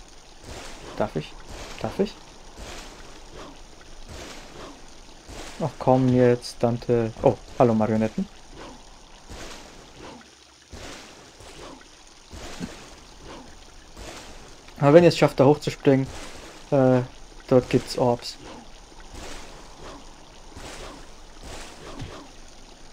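A sword swishes and clangs in quick strikes.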